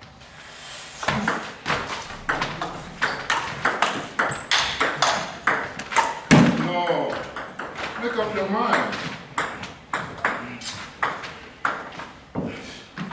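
A ping pong ball clicks back and forth off paddles and a table in an echoing hall.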